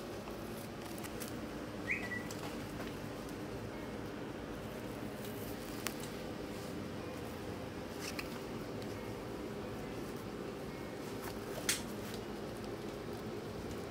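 A needle and thread pull through a mesh cap with faint rustling.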